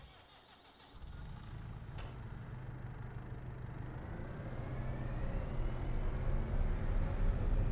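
A tractor engine rumbles and rises steadily as the tractor drives off.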